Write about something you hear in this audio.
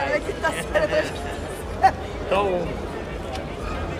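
A young woman laughs and talks nearby.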